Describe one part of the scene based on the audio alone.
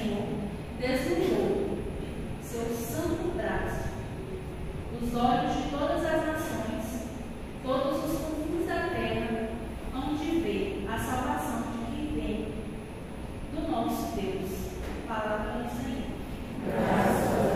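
A young woman reads out calmly through a microphone and loudspeaker.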